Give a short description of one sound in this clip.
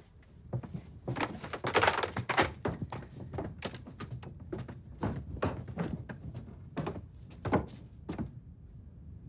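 Small objects clatter and tap on a table.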